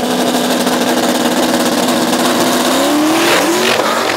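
A drag racing car's V8 engine revs at the start line.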